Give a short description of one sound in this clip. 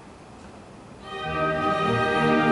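An orchestra begins playing strings and winds.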